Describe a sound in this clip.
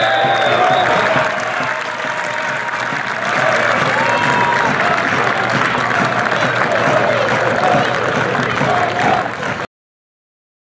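A small crowd cheers and chatters.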